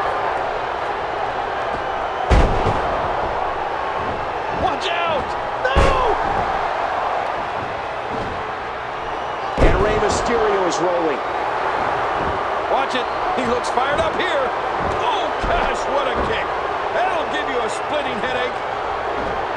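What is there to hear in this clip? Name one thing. A large arena crowd roars and cheers steadily.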